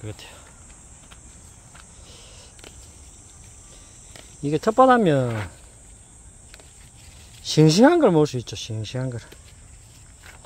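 Leaves rustle softly as a hand brushes them.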